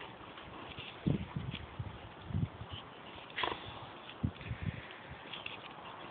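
Two dogs growl as they tug at a toy.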